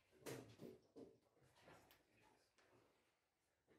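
A chess piece clacks down on a board.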